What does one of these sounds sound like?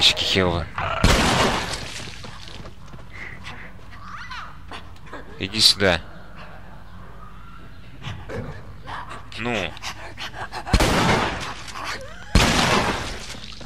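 A shotgun fires loud blasts that echo briefly.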